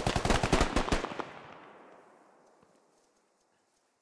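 A series of loud blasts booms and echoes away across open ground.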